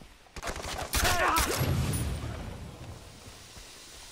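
A car explodes with a heavy boom that slowly fades.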